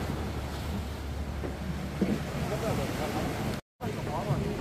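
Sea waves wash against rocks nearby.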